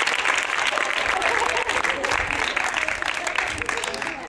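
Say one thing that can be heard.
Women cheer and call out with excitement.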